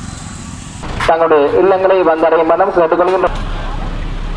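A loudspeaker blares an announcement.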